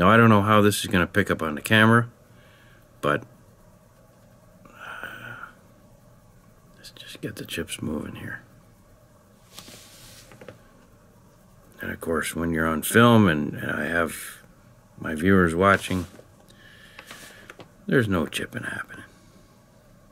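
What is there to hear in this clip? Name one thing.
A man speaks calmly and close by, in short phrases with pauses.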